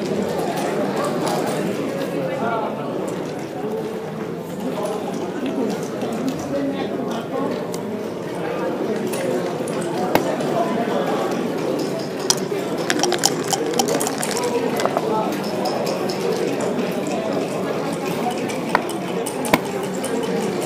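Plastic checkers click as they slide and tap on a wooden board.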